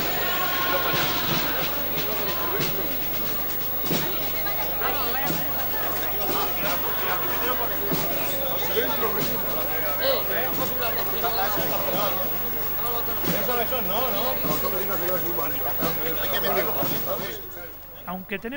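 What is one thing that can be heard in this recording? A crowd of men and women chatters and murmurs outdoors.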